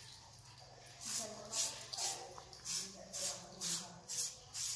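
A hand rubs briskly against bare skin.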